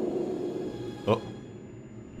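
A glass bottle is set down on a table with a clunk.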